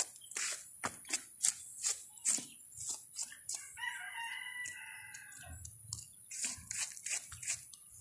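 A hand pats a large stone.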